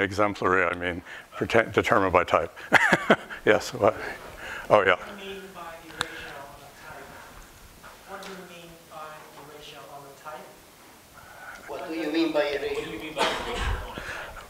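A middle-aged man lectures with animation in a large room.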